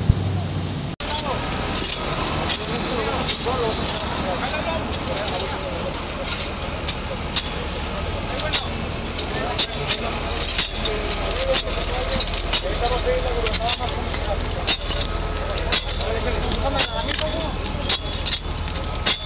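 Men talk nearby.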